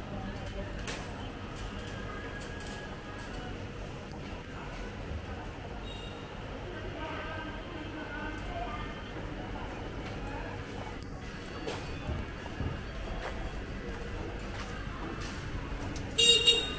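Quiet street noise hums steadily outdoors.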